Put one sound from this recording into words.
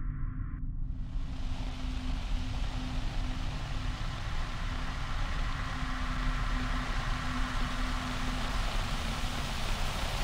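A television hisses with steady static.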